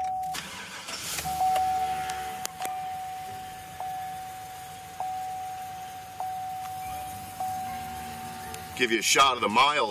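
A car's warning chime dings over and over at a steady pace.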